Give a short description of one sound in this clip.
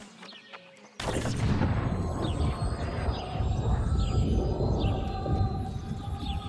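A magical shimmering whoosh rises and rings on.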